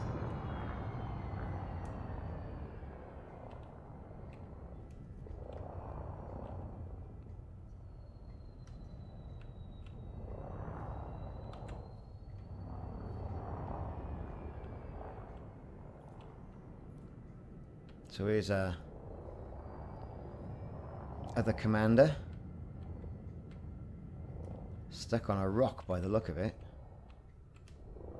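A spacecraft engine hums with a low, steady rumble that swells and eases.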